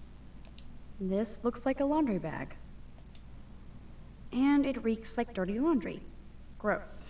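A young woman speaks with disgust close by.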